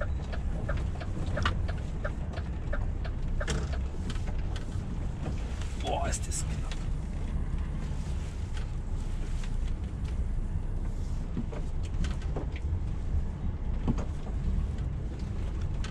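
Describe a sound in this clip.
The cab rattles and clicks over the road.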